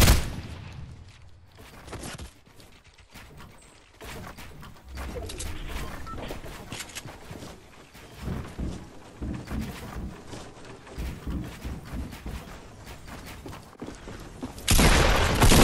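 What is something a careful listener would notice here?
Wooden panels snap into place with short knocks, again and again.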